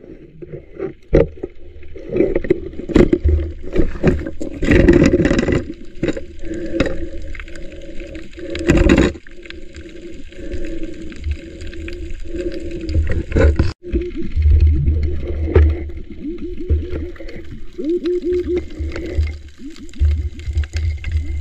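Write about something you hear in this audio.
Water churns and swishes in a muffled underwater rumble.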